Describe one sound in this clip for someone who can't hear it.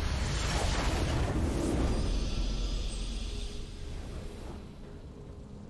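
A triumphant game fanfare swells loudly, then fades away.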